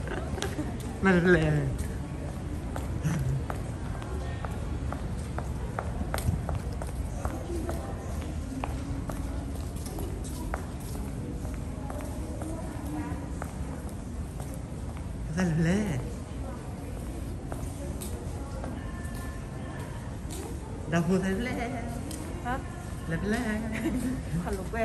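Footsteps tap on a hard floor in a large echoing hall.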